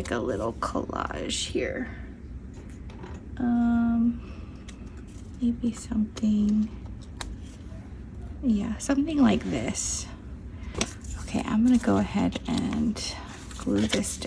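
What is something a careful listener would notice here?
Paper rustles and crinkles under handling.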